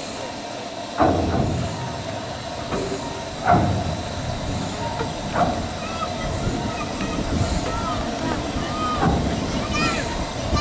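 A turntable creaks and clanks as it turns a steam locomotive.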